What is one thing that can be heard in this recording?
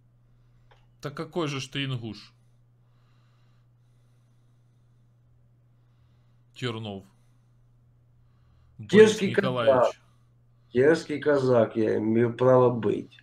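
A man talks with animation into a close microphone, in pauses.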